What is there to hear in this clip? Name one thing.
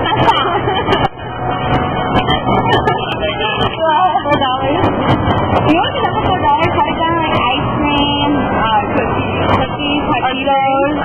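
A young woman talks excitedly close by.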